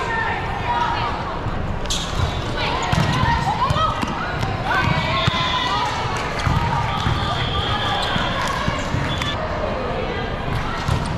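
Young girls call out and cheer loudly.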